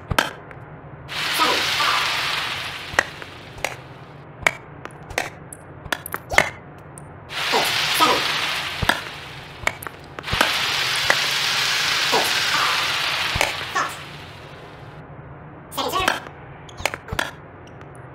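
A tennis ball is hit back and forth with sharp pops.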